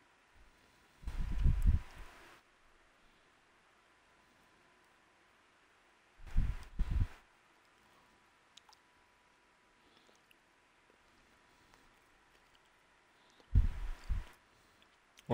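A young man speaks briefly into a close microphone, in short bursts with pauses.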